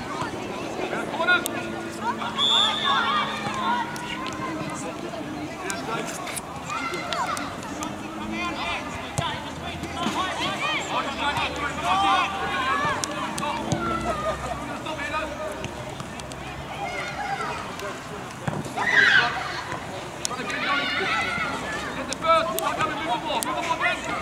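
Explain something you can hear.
Young boys shout to each other across an open outdoor pitch.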